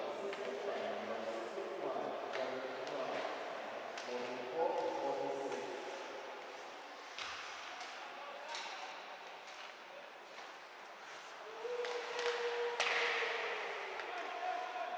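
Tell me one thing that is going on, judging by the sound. Ice skates scrape across a rink.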